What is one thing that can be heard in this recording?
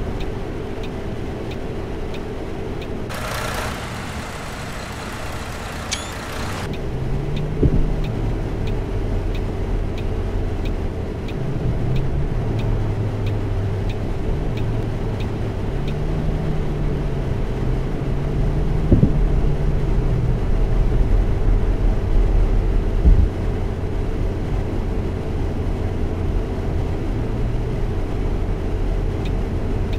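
Tyres roll over asphalt.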